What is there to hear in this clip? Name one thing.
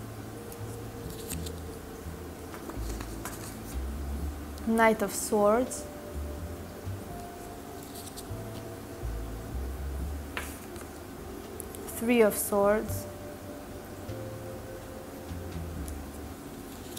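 Playing cards slide and tap softly as they are picked up and laid down.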